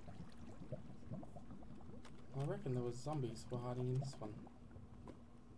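Lava bubbles and pops softly.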